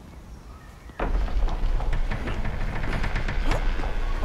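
A heavy wooden door scrapes and creaks open.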